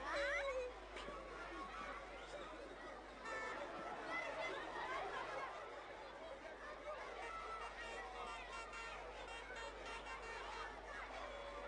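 Outdoors, a large crowd murmurs in the distance.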